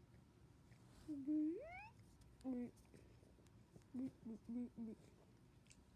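A squeaky toy squeaks several times in short bursts.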